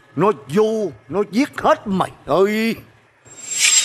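A young man speaks tensely nearby.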